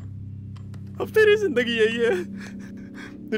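A middle-aged man laughs loudly with a wavering voice.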